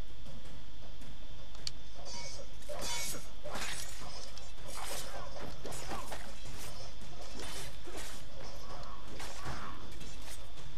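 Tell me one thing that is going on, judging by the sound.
Swords clash and strike repeatedly in a scuffle.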